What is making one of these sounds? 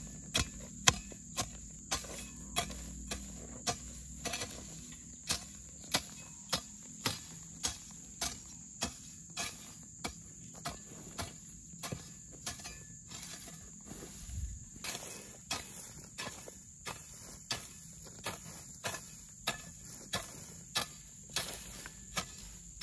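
Dry grass and soil rustle and scrape under a hoe.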